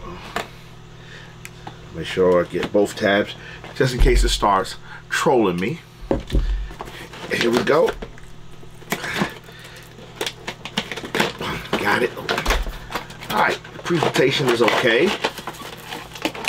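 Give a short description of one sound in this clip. Cardboard packaging scrapes and rustles.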